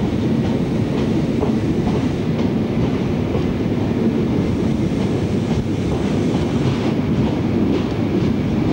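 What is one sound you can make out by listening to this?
A train rushes past close by with a steady low rumble.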